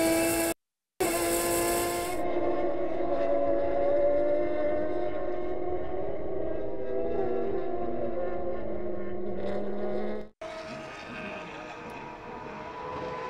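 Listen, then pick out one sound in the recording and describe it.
Race car engines roar as cars speed past on a track.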